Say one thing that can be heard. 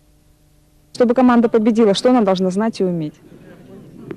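A woman asks a question into a microphone.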